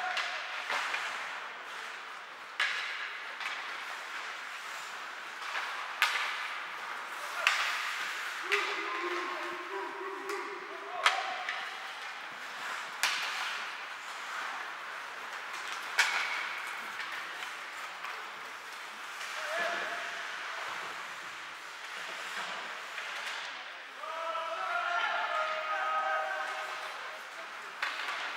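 Skates scrape and hiss across the ice in an echoing rink.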